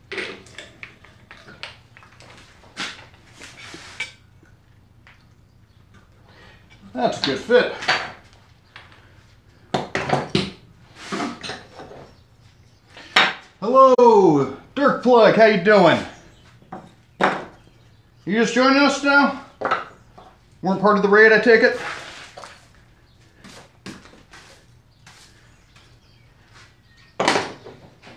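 Wooden tools knock and clatter on a workbench.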